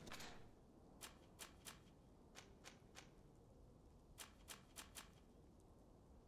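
Menu selections click softly, one after another.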